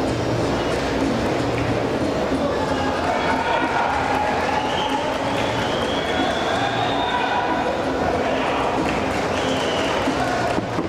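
A large crowd murmurs in an open arena.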